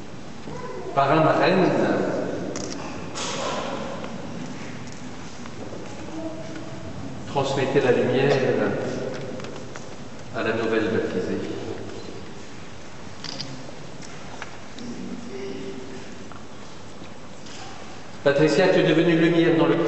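A crowd of men and women sings together in short bursts in a large echoing hall.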